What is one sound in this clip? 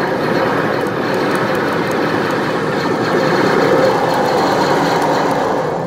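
An arcade game's music and sound effects play loudly from its speakers.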